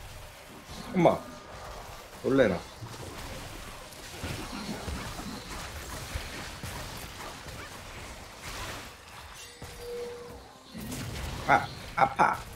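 Video game characters clash with sharp hits.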